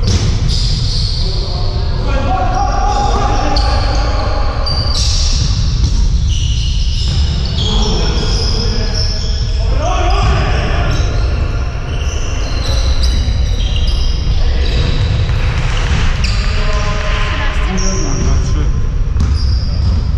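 Men call out to each other across a large echoing hall.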